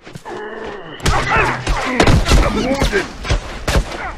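A blade stabs into a body with heavy, wet thuds.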